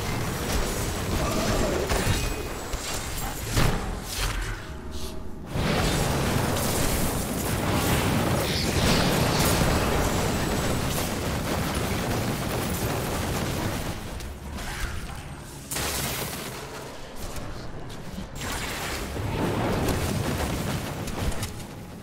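Magic blasts crackle and boom in rapid bursts.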